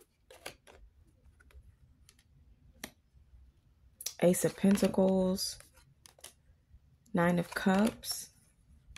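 A playing card is laid down on a wooden table.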